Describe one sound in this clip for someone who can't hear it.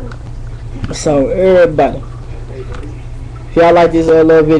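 A young man sings loudly and close by.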